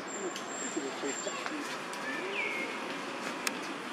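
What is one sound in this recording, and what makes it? Dry leaves rustle as monkeys move on the ground.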